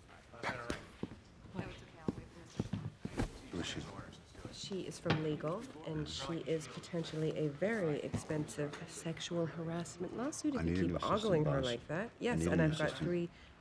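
A woman talks in a calm, businesslike voice, close by.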